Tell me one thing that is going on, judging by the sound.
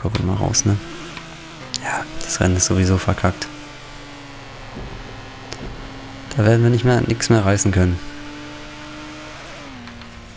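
A car engine drones steadily, rising in pitch as the car speeds up.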